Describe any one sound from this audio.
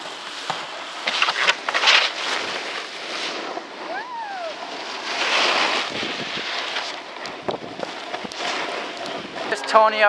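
A snowboard scrapes across packed snow.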